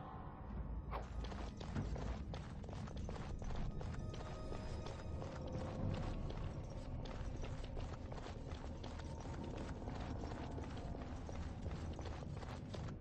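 Footsteps tread steadily on rocky ground.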